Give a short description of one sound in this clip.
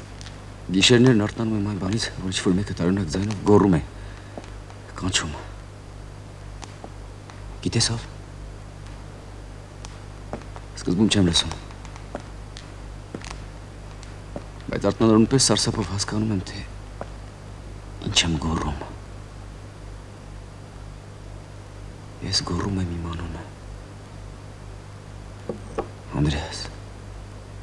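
A man speaks in short, tense bursts with long pauses between them.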